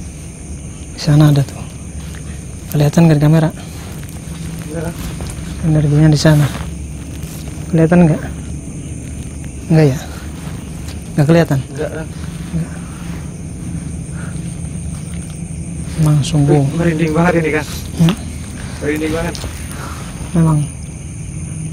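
A young man talks nearby in short bursts.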